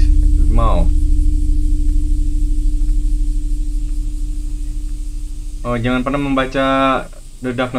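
A young man reads aloud with animation into a microphone.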